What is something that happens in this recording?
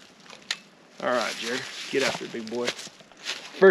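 A man speaks calmly nearby outdoors.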